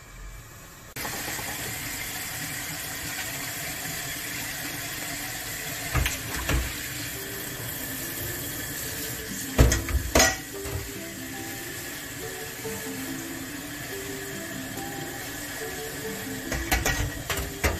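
Food simmers and sizzles in a covered pan.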